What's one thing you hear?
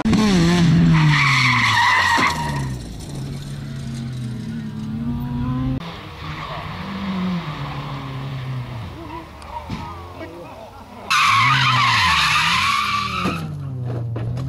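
Tyres squeal on asphalt.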